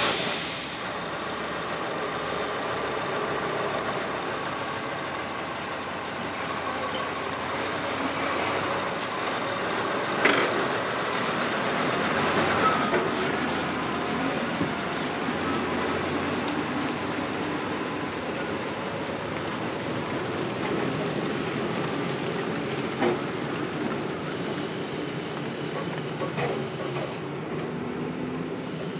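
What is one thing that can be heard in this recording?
Tyres crunch and squelch over a muddy dirt road.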